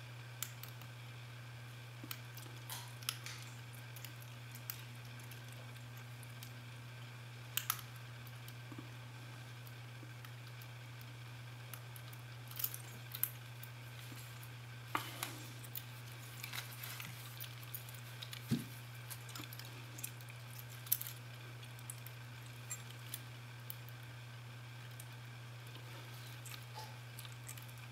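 Small metal picks click and scrape against a lock.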